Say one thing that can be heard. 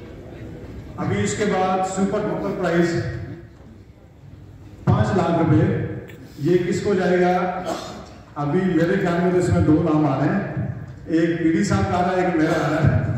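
A man speaks loudly over a loudspeaker, echoing in a large hall.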